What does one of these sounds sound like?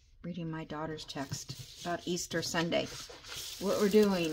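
Papers rustle and slide as they are shuffled by hand.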